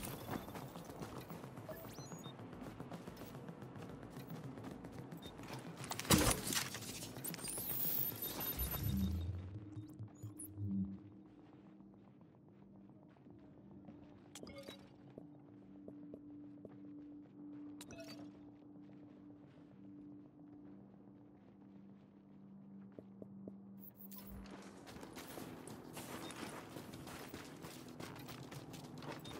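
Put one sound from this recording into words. Gunshots crackle in rapid bursts.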